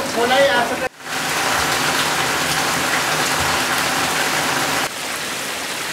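Muddy water rushes over stones.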